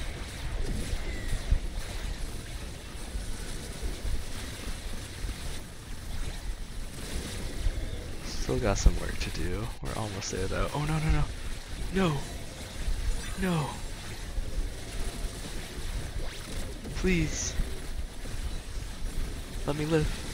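Magic blasts crackle and burst rapidly.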